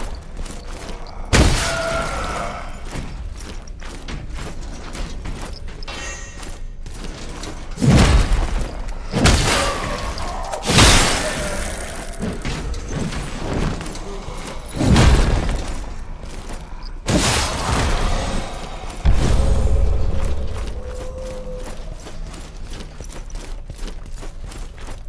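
Armoured footsteps crunch on stone.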